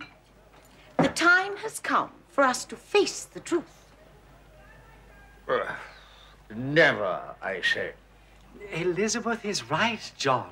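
A young man speaks with animation, close by.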